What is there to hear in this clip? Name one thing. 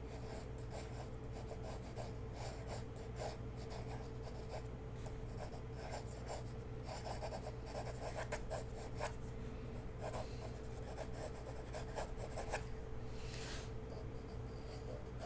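A pencil scratches and scrapes across paper close by.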